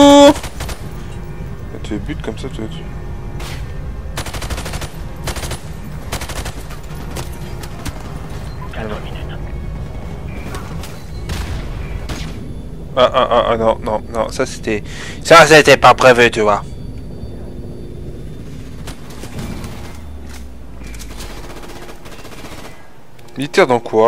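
Rapid gunfire rattles and echoes down a hard corridor.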